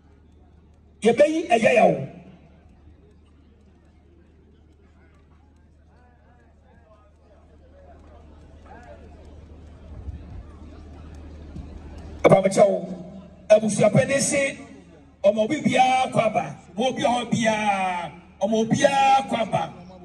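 A man speaks loudly through a microphone over loudspeakers outdoors.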